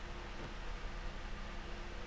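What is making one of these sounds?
A door handle rattles.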